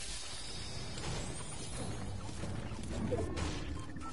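A treasure chest creaks open with a shimmering chime.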